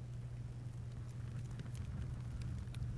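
A fire crackles in a fireplace.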